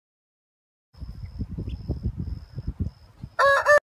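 Chickens cluck close by.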